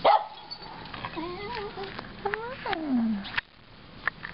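A small dog whines in high, rising and falling cries.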